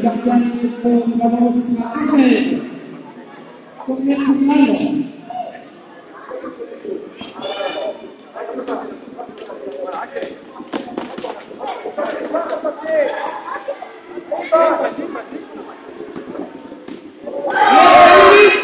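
Young children shout and call out in a large echoing hall.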